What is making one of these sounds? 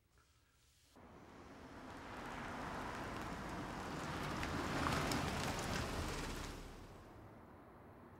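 A car drives up slowly and stops, its engine growing louder.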